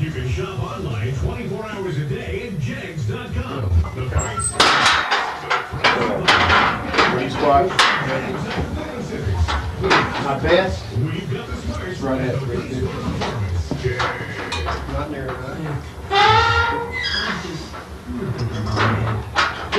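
Several men talk and shout encouragement nearby.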